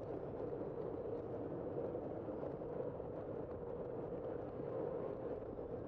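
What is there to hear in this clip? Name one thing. Bicycle tyres hum steadily on the road.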